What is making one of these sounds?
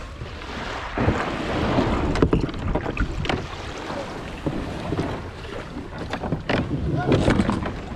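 Small waves lap and wash at the shore.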